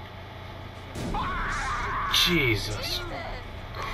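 A young woman screams.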